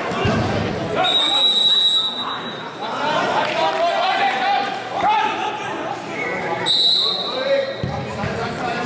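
A referee's whistle blows in long shrill blasts.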